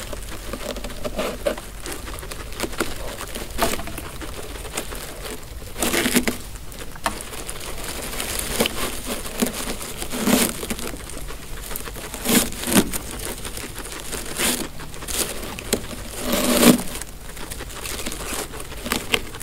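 Guinea pigs chew hay with quick, crisp crunching.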